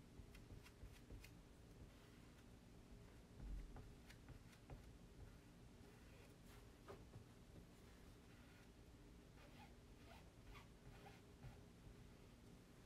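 A stencil brush dabs and taps softly on a board.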